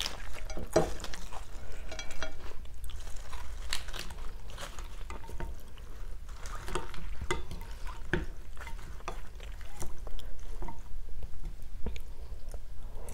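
Chopsticks and a spoon click against a glass bowl.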